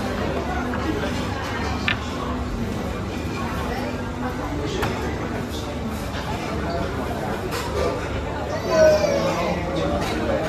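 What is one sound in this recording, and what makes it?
Plates clink on a table.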